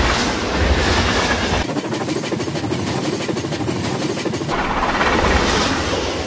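A train rumbles and clatters along the rails.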